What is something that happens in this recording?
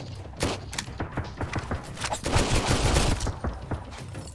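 Heavy melee blows land with wet, crunching thuds.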